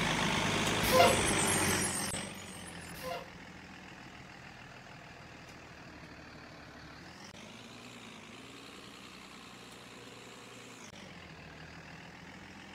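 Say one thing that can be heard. A bus engine hums steadily, its pitch rising as it speeds up.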